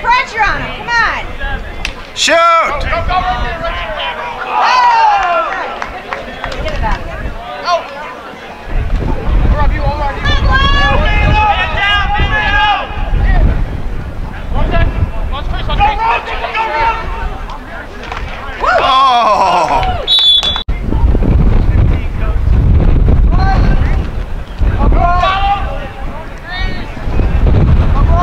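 Young men shout across an open field.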